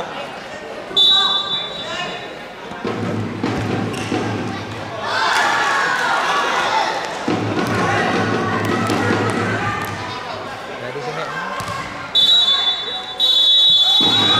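A referee's whistle blows sharply in an echoing hall.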